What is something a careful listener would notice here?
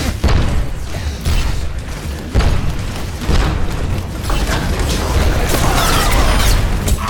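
Gunfire and blasts boom in quick bursts.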